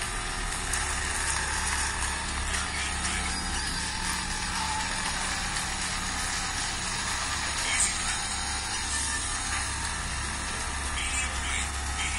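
A rally car engine roars steadily through a small handheld speaker.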